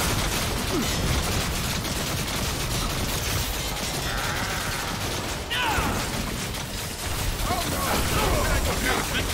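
Heavy thuds and scuffles of a fight rumble throughout.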